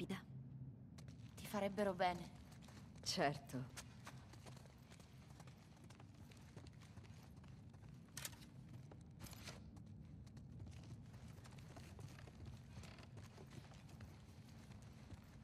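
Footsteps tread slowly across a hard floor indoors.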